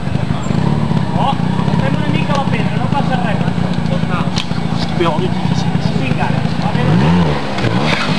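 A crowd of spectators chatters and calls out nearby.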